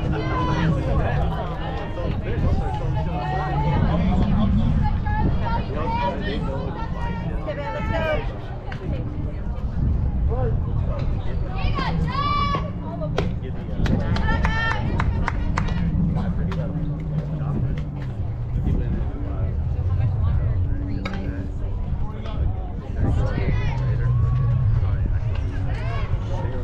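Young women shout and call out across an open field.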